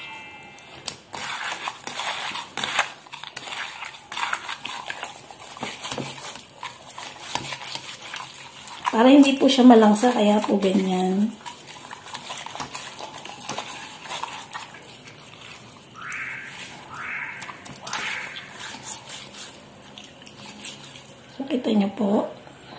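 Hands rub and squeeze squid in coarse salt with a wet, gritty scrunching.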